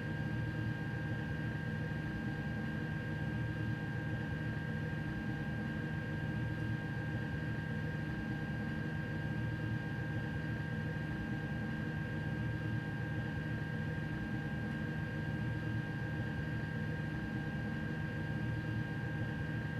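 An electric locomotive hums steadily while standing still.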